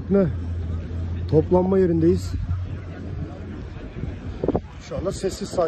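A crowd chatters outdoors at a distance.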